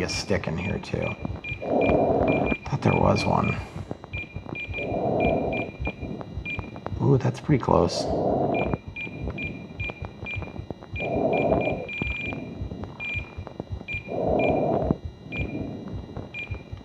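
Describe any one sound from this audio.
A handheld controller beeps in short, repeated chirps as its buttons are pressed.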